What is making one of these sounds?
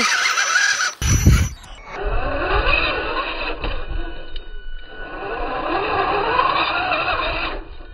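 A small electric motor whines as a toy truck crawls over rocks and dirt.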